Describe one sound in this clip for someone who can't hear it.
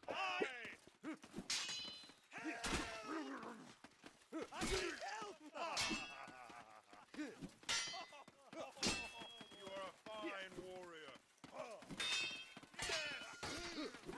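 Steel swords clash and clang sharply.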